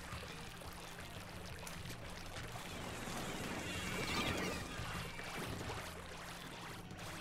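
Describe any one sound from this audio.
Game sound effects of ink splattering play throughout.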